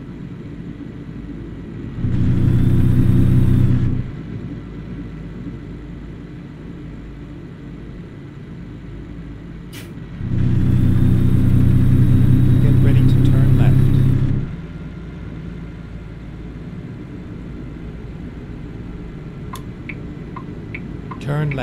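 A truck engine hums steadily and roars louder at times.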